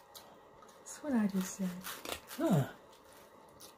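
A woman hums and makes pleased sounds while eating.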